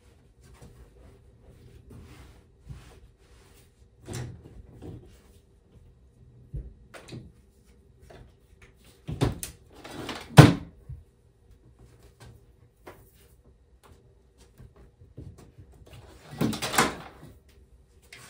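Small objects clatter and knock on a table.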